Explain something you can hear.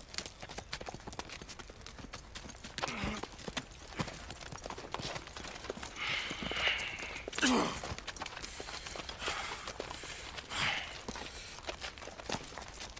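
Horses' hooves clop on gravel.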